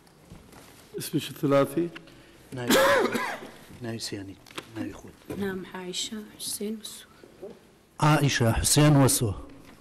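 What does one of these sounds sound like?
A man speaks firmly into a microphone.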